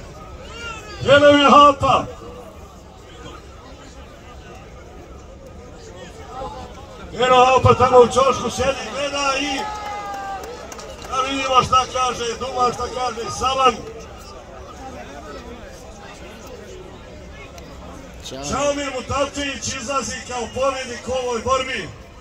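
A large outdoor crowd cheers and shouts in loud bursts.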